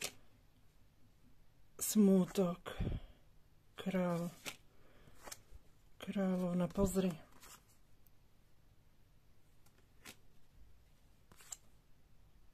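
Playing cards are laid down with soft taps.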